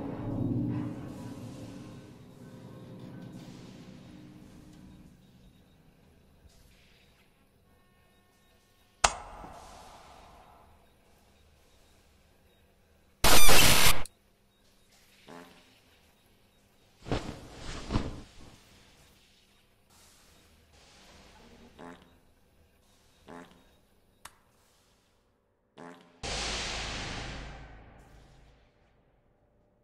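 Short electronic game sound effects play in bursts.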